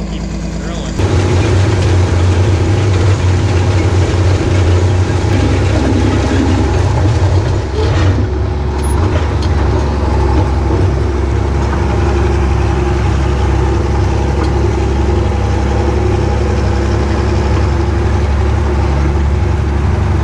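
A seed drill rattles and clatters over the soil.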